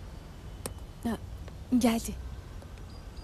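A young woman speaks briefly and quietly nearby.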